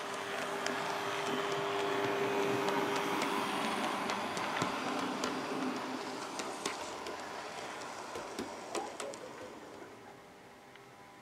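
A model train rumbles and clatters along its track.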